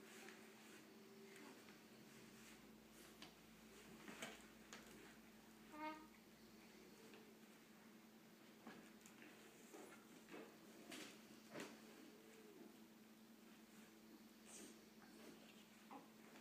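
A toddler handles plastic toys with light clicks and knocks.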